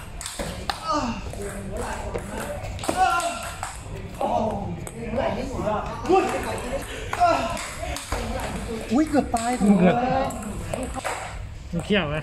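Table tennis balls click off paddles and the table in a quick rally.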